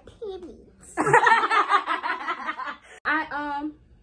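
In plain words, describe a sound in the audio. Young women laugh loudly together.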